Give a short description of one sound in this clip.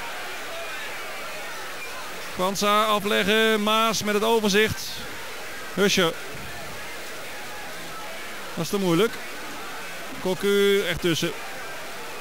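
A large crowd murmurs steadily in a stadium, outdoors.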